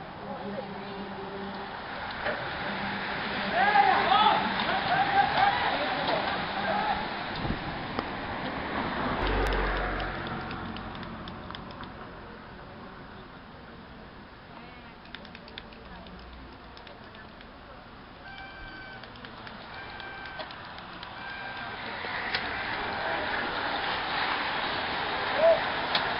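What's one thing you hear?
A large pack of racing bicycles whirs past close by.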